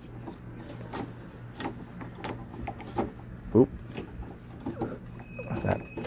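A screwdriver turns a screw.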